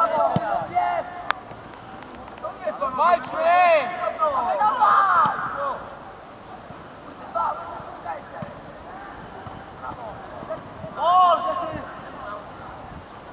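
Young players shout to each other outdoors across an open field.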